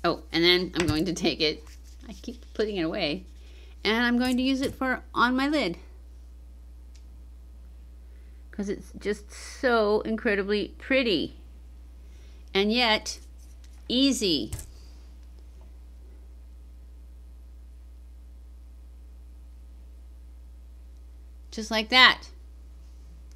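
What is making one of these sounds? A middle-aged woman speaks calmly and close to a microphone, pausing now and then.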